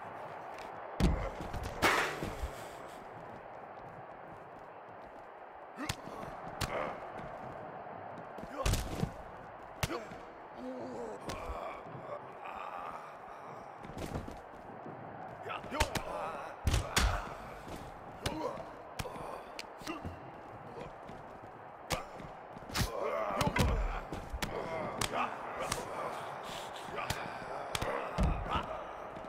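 Heavy thuds and crashes sound as bodies slam onto crates and the floor.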